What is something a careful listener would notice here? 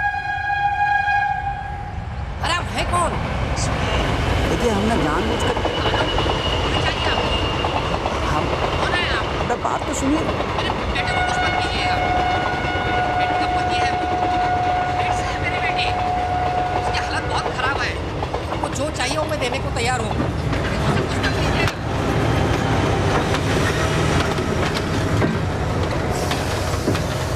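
A young man speaks in a strained, tearful voice over a phone.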